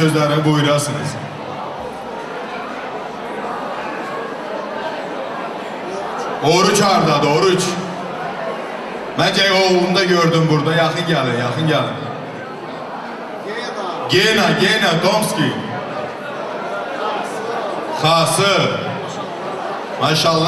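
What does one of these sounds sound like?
A man speaks loudly with animation through a microphone and loudspeakers in a large echoing hall.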